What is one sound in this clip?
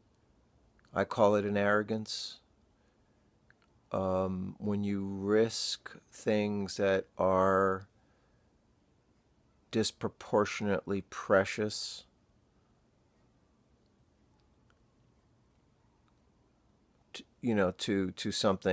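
A man talks close up in short, thoughtful bursts with pauses between.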